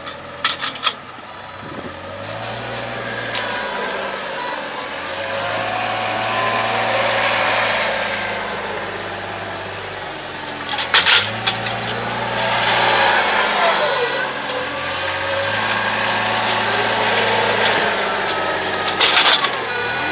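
A small wheel loader's diesel engine hums and revs nearby.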